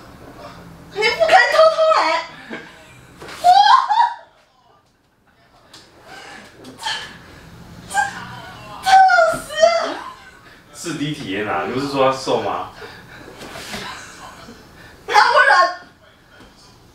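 A young woman talks and laughs nearby.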